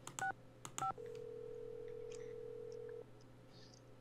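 A telephone rings through the line with a steady tone.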